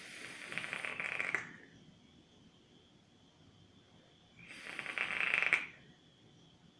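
An electronic vaping device crackles and sizzles close by as a man draws on it.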